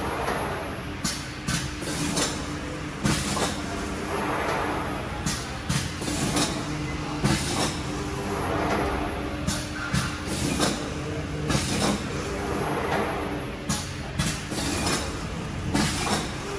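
A machine clunks and knocks sharply every second or so.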